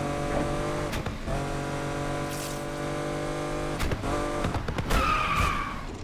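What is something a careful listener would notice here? A car exhaust pops and crackles.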